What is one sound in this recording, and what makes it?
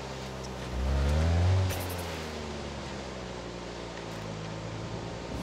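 Tyres skid and crunch over sand and gravel.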